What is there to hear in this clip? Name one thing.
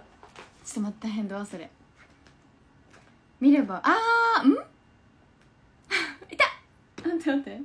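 A young woman talks cheerfully and with animation close to the microphone.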